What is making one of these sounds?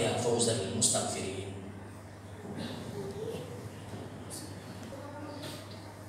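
A man preaches through a microphone and loudspeakers, echoing in a large hall.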